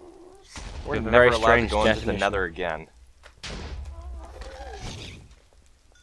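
Fireballs explode with dull booms.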